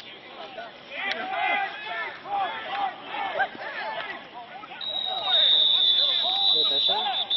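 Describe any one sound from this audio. A man cheers loudly nearby.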